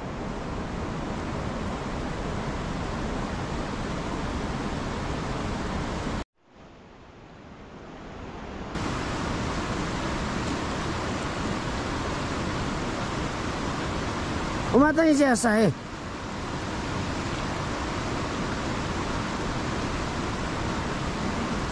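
Water in a river flows and rushes steadily outdoors.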